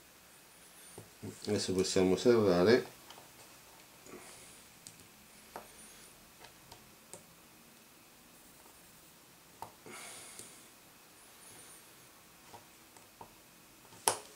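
Plastic film crinkles and clicks softly in hands.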